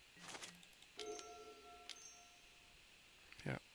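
Game sound effects chime and click as cards are played.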